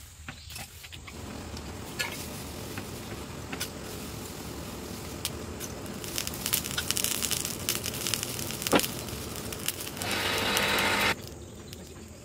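A forge fire roars steadily under a blowing draught.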